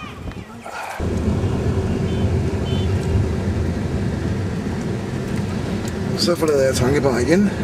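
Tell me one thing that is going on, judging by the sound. A car engine rumbles steadily from inside a moving vehicle.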